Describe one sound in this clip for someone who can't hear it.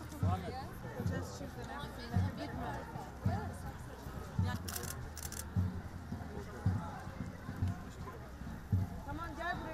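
A crowd of children chatters and calls out outdoors.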